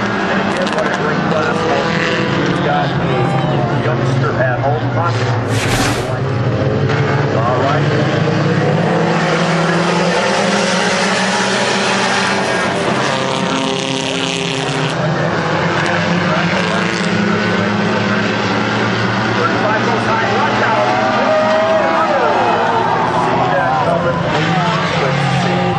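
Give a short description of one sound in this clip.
A pack of small dirt-track stock cars races at full throttle around a dirt oval, engines droning and revving.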